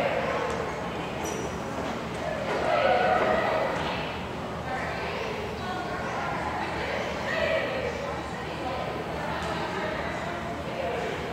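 A crowd of young people chatters and shouts in a large echoing gym.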